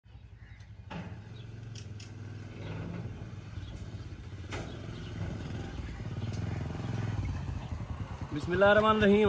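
A motorcycle engine rumbles nearby and grows louder.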